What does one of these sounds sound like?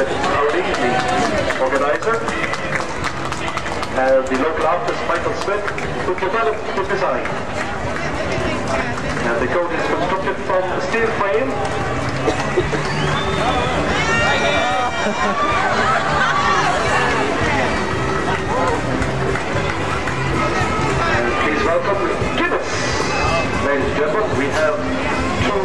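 A crowd of men and women chatters and calls out nearby.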